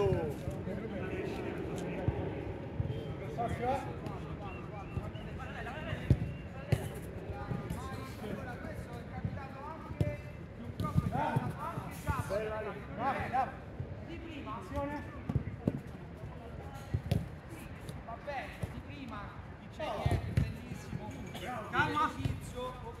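A ball is kicked with dull thuds.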